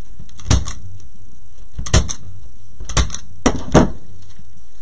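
A glue gun clicks sharply a few times.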